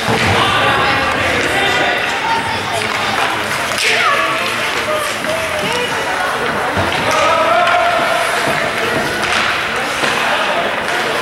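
Skates scrape and swish across ice in a large echoing rink.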